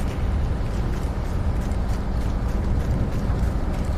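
A large vehicle's engine rumbles low and steady.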